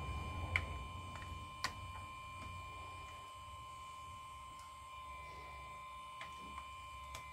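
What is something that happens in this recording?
Small tools and phone parts click and tap on a hard surface.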